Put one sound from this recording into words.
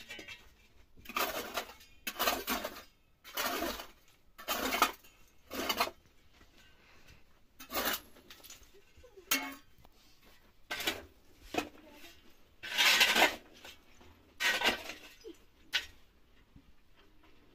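A shovel scrapes and scoops rubble.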